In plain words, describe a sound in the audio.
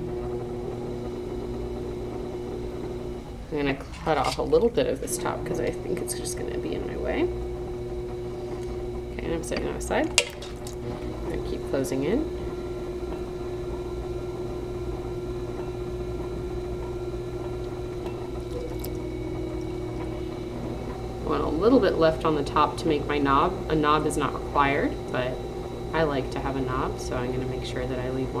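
A pottery wheel hums steadily as it spins.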